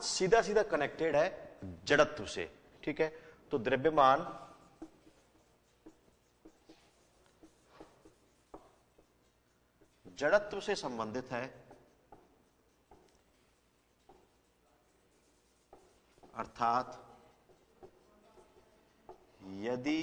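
A man speaks steadily, explaining, close to a microphone, with pauses.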